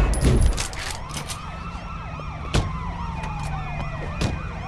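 A police siren wails rapidly close by.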